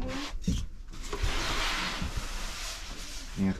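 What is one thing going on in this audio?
Shower curtain rings slide along a rod with a scraping rattle.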